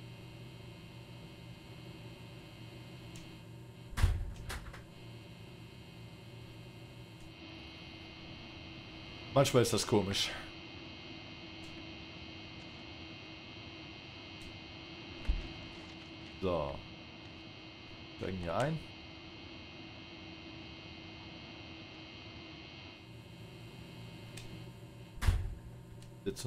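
A locomotive engine hums steadily at idle.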